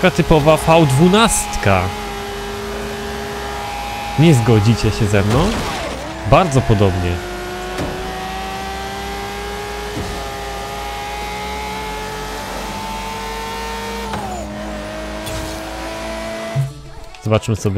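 A racing car engine roars steadily and shifts gears.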